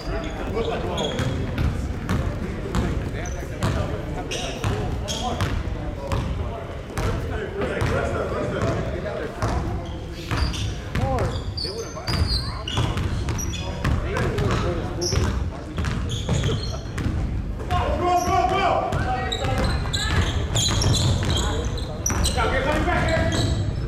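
A basketball bounces on a wooden floor with sharp echoing thuds.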